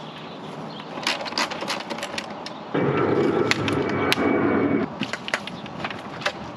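Plastic and metal parts click and clatter as a battery is handled.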